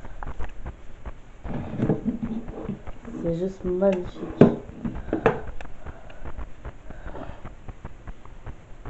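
A headset knocks and rustles as it is handled close by.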